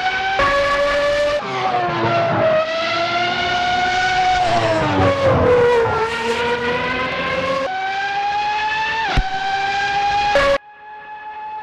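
A racing car engine screams at high revs, rising and falling as it shifts gears.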